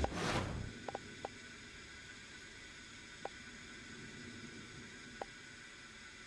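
Soft, sharp clicks tick now and then.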